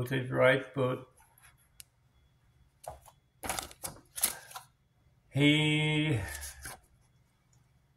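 Paper rustles as a printed sheet is handled close by.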